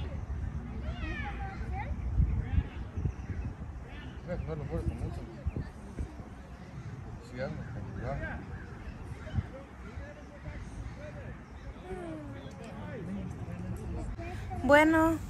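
Young players shout faintly in the distance.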